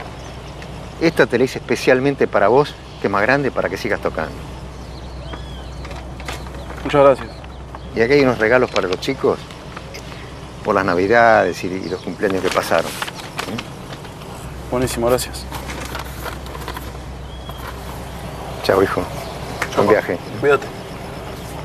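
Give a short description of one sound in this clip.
An elderly man talks calmly and warmly, close by.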